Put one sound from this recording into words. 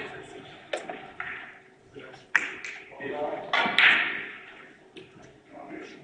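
Billiard balls click sharply against each other.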